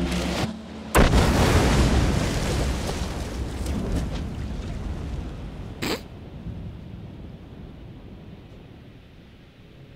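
Flames burst with a loud whoosh and roar, slowly dying down.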